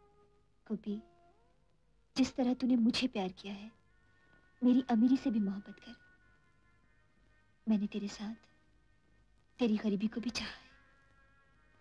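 A young woman speaks softly and pleadingly, close by.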